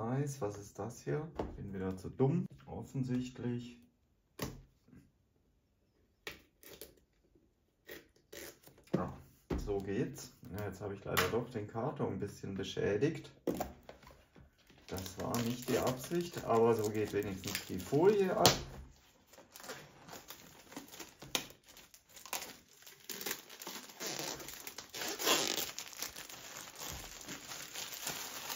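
A cardboard box rubs and scrapes as it is handled and turned.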